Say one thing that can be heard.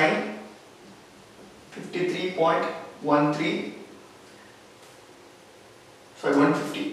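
A young man speaks calmly, explaining, close by, in short bursts.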